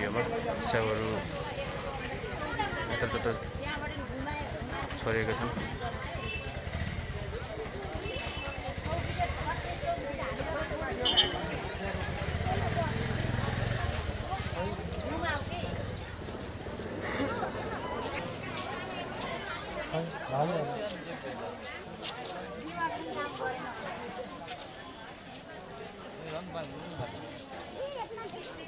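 A crowd of men and women talks in a low murmur outdoors.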